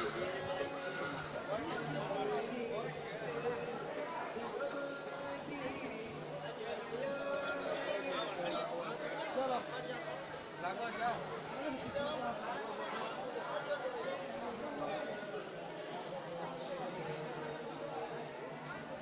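A crowd of men and women chatters nearby outdoors, with many voices overlapping.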